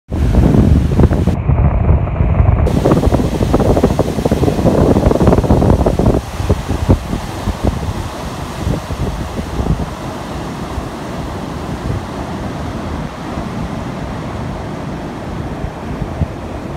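Waves crash and churn against rocks, loud and close, then grow softer.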